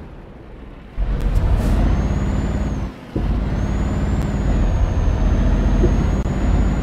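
A truck engine rumbles and drones steadily.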